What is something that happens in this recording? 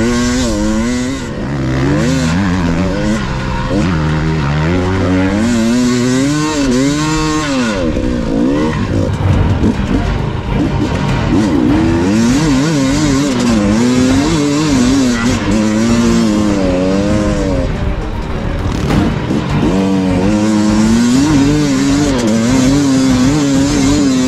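A dirt bike engine revs hard up close, its pitch rising and falling.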